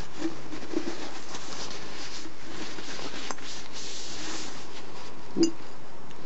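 Tissue paper rustles and crinkles as it rubs against glass.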